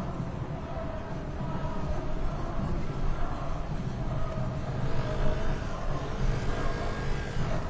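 Motorcycle engines idle and rumble close by.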